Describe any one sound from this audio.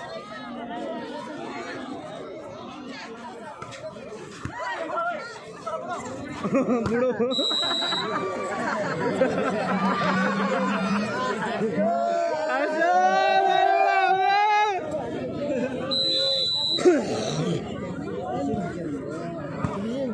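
A large outdoor crowd cheers and shouts, growing louder.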